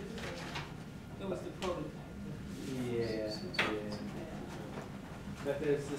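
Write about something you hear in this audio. An elderly man speaks calmly, as if giving a talk.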